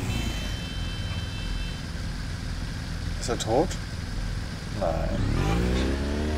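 Motorcycle engines rumble steadily as they ride along a road.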